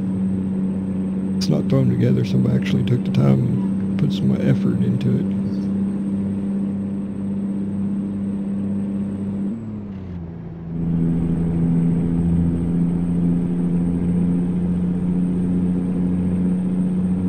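A truck engine drones steadily, dipping briefly as it shifts gear.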